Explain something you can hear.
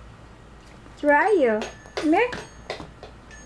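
A toddler babbles in a high, sing-song voice close by.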